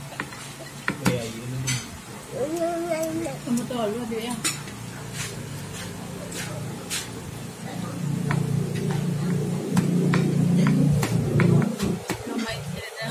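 A young boy talks and sings playfully close by.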